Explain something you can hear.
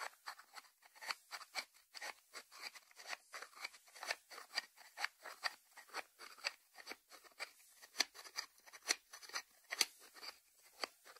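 Fingernails tap on the lid of a ceramic salt dish.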